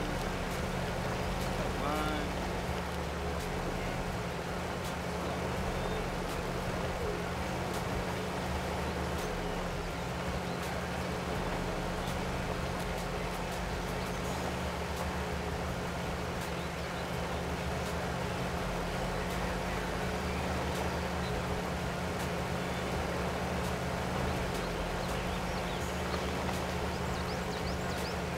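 A truck engine drones steadily at low speed.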